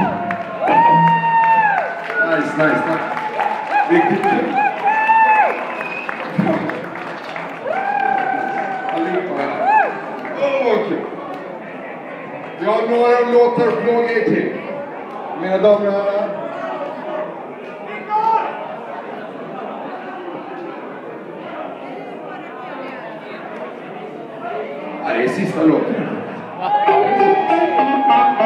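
A live rock band plays guitars, bass and drums over loudspeakers.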